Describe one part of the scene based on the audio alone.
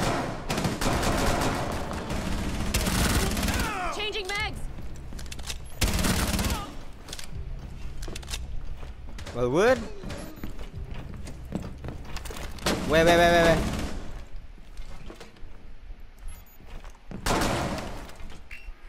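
Rapid gunfire rattles in loud bursts.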